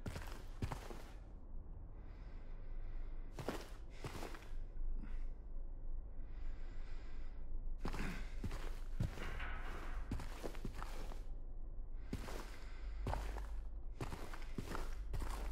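Slow footsteps thud on a wooden floor.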